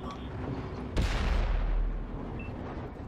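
A tank cannon fires with a loud boom that rolls away.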